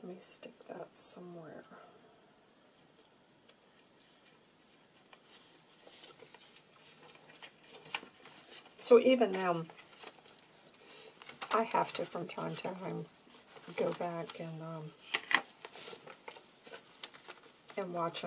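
Paper rustles and crinkles as pages are handled and turned.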